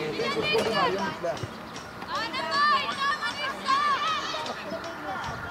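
Children shout to each other across an open outdoor field.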